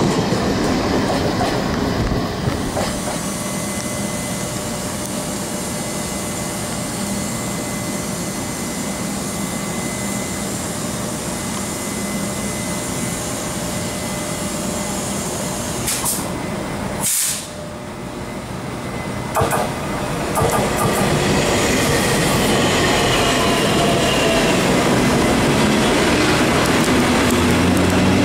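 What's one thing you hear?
A train rumbles along the tracks close by.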